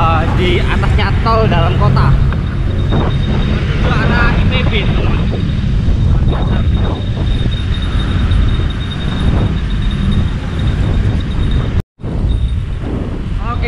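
Wind rushes loudly past a microphone.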